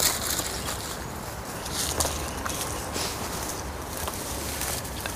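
Footsteps crunch on dry ground close by.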